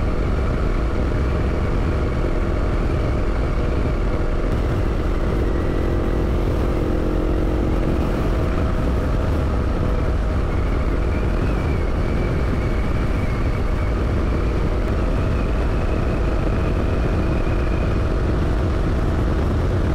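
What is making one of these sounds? Wind rushes loudly past the rider.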